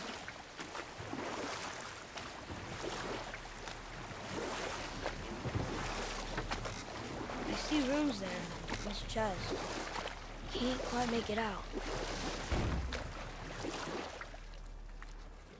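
Oars splash through water as a boat is rowed.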